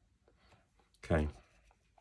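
Paper rustles softly as it is moved.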